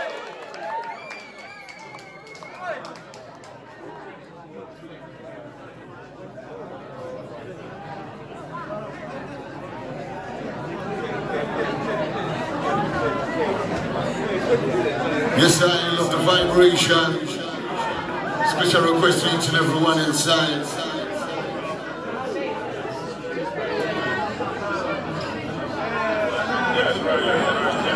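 Music plays loudly from speakers.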